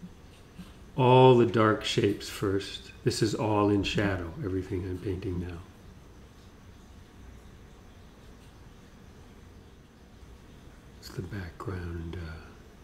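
A man talks calmly and close by, in short bursts.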